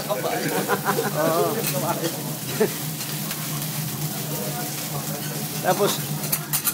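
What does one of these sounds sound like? Metal utensils clink and scrape on a hot grill.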